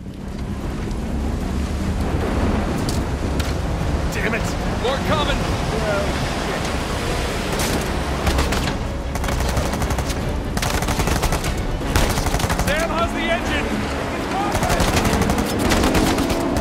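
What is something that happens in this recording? Stormy waves crash and surge against a boat.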